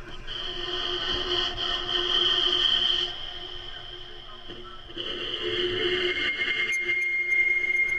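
A bow scrapes across a metal rod, drawing a sustained, eerie electronic drone.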